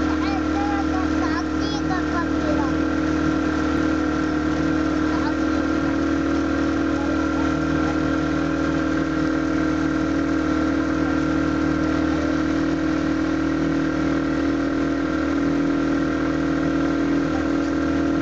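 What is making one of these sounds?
Water splashes against the side of a boat.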